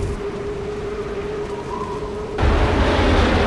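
A burning airship roars as it plunges downward.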